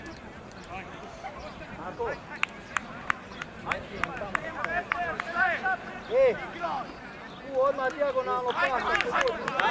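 A crowd of spectators chatters in the distance.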